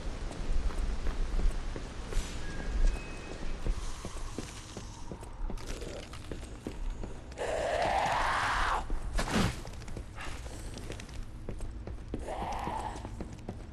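Footsteps run across hard floors.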